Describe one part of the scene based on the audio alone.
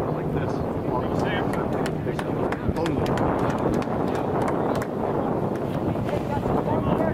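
Men call out to each other across an open field.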